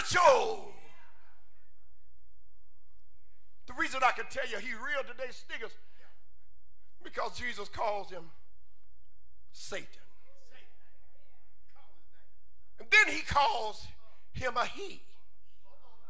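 A man preaches with animation through a microphone, in bursts with pauses, in a large echoing room.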